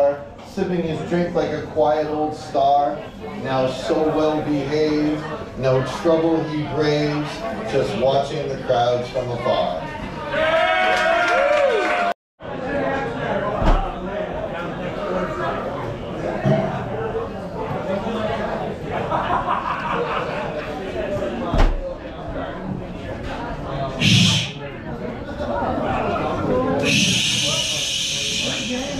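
A man reads out with animation through a microphone and loudspeaker.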